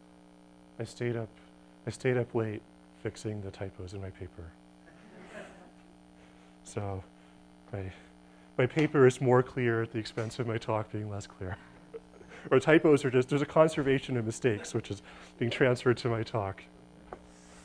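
A man lectures calmly to a room.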